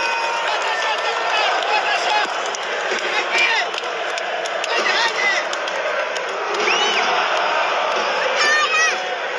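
A large stadium crowd chants and roars loudly outdoors.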